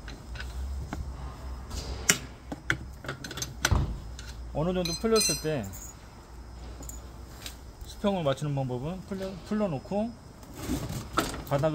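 Metal parts click and clack.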